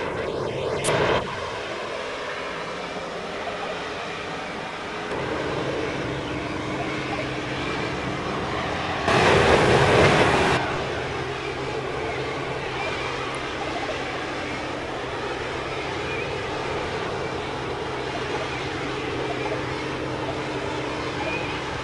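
Jet thrusters roar.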